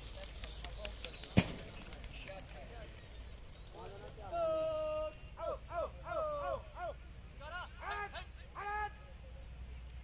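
Pigeons flap their wings as they take off.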